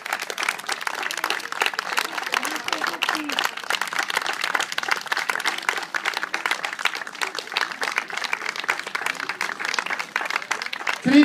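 An outdoor audience applauds with steady clapping.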